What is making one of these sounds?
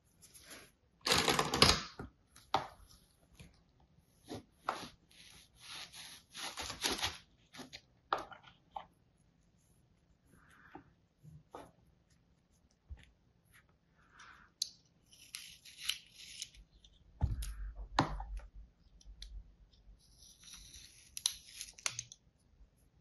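Soft sand crumbles and rustles.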